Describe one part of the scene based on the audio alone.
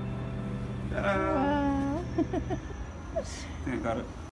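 A young man sings out and laughs.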